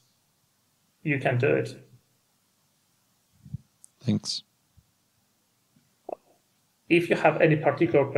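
A man speaks calmly into a microphone over an online call, in short bursts with pauses.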